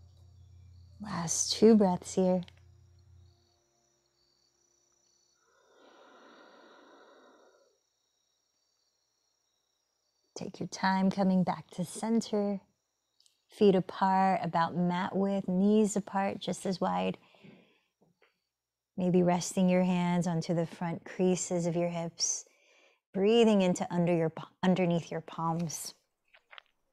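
A woman speaks calmly and softly close to a microphone.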